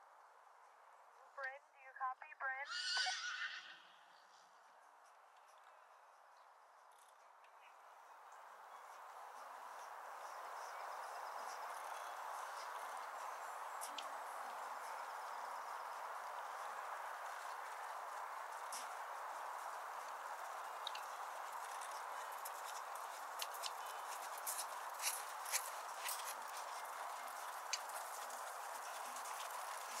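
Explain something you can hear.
Hooves thud softly on sand as a horse trots.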